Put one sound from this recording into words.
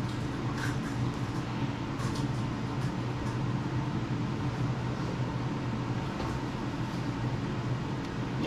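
A spatula scrapes and spreads soft frosting.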